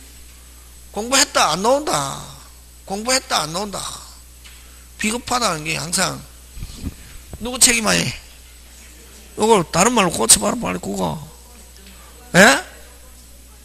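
A middle-aged man lectures in short bursts through a microphone, with pauses in between.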